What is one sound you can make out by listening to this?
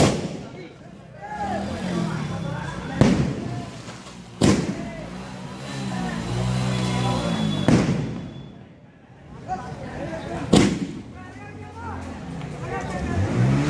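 A fountain firework hisses and crackles.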